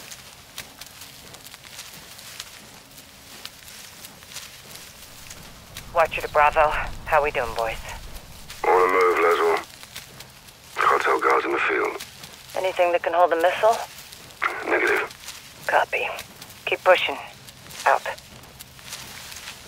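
Grass rustles softly as someone crawls through it.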